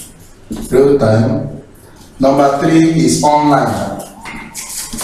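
A young man speaks calmly and clearly nearby.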